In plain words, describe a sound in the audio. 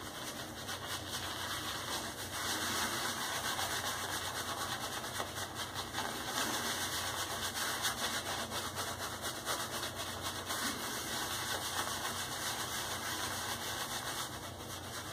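A shaving brush scrubs lather briskly over a scalp with a soft, wet swishing.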